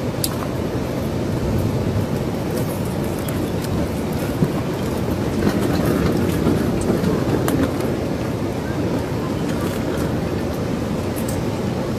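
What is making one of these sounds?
A forklift engine rumbles steadily nearby.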